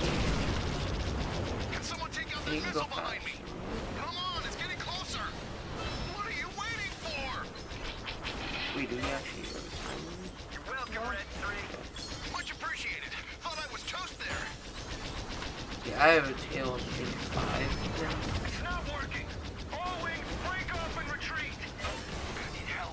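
A teenage boy talks with animation close to a microphone.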